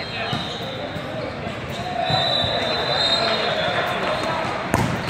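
Young players call out to each other in a large echoing hall.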